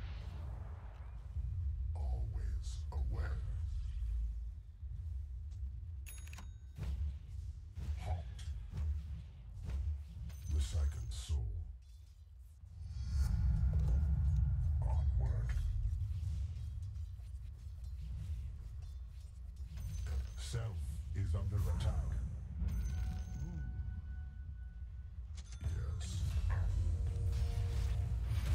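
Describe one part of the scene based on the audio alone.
Magic blasts zap and crackle in a fight between game characters.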